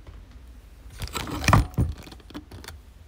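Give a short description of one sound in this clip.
Loud bumps and rustling sound close by.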